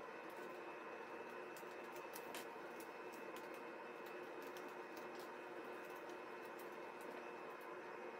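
Hands crinkle and rustle woven paper strips.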